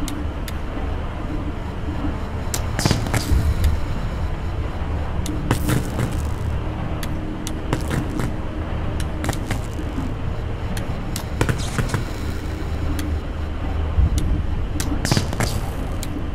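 Electricity crackles and hums.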